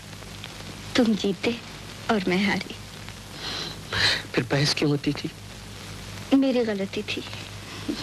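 A young woman speaks softly and playfully close by.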